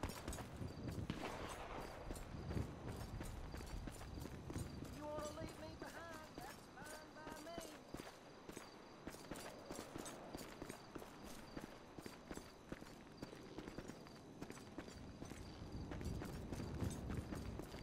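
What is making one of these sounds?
Footsteps crunch quickly on gravel and dirt.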